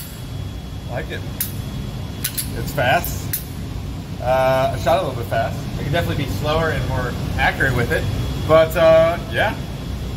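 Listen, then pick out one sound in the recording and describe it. A man talks and laughs close by.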